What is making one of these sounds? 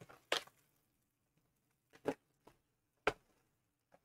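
Plastic wrap crinkles.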